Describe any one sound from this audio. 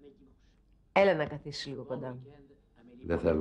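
A middle-aged woman speaks with animation, close by.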